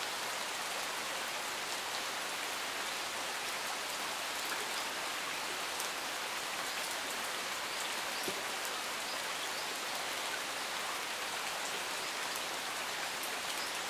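Steady light rain patters on leaves and gravel outdoors.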